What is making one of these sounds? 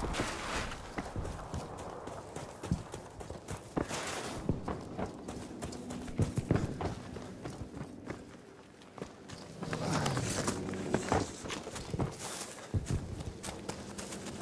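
Footsteps crunch on sand and dirt.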